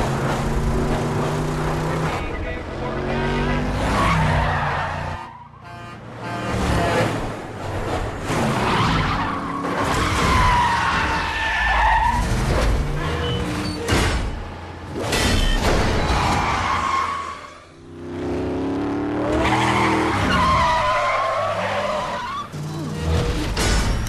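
Heavy truck engines roar at speed.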